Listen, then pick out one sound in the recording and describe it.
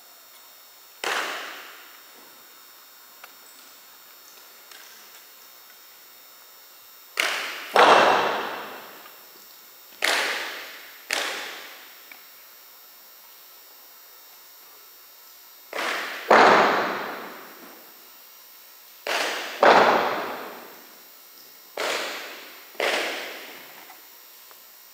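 Drill rifles are slapped and thumped in unison, with a sharp bang that echoes through a large hall.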